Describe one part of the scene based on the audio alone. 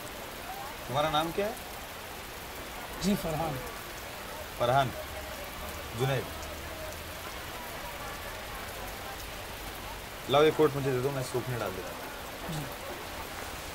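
A young man speaks with animation in short bursts, close by.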